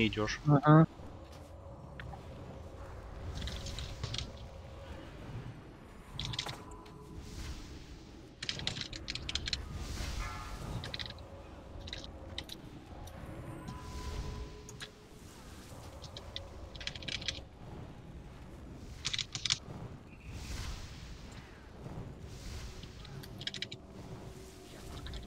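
Game spell effects whoosh and crackle in short bursts.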